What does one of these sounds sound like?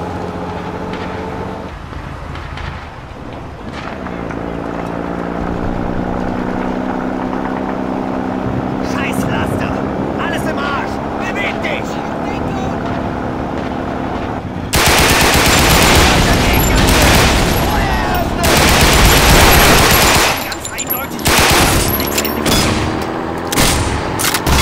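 A truck engine drones and changes pitch as the truck drives.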